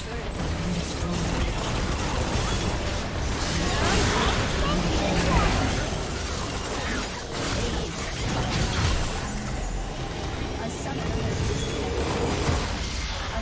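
Magic spells whoosh and crackle in a fast game battle.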